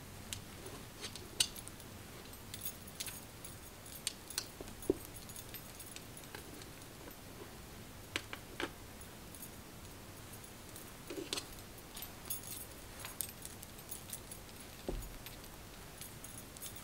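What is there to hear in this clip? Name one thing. Fingers rustle through hair.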